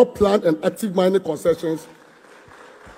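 A man speaks loudly into a microphone in a large hall.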